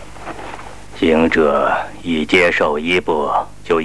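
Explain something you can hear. An elderly man speaks firmly and slowly, close by.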